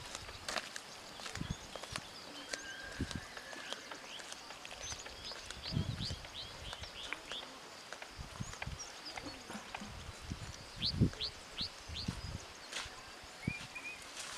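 Footsteps crunch softly on a dirt path, moving away.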